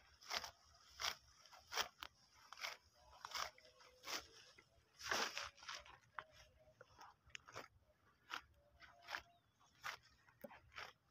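Leafy plants rustle and tear as they are pulled up by hand, in short bursts.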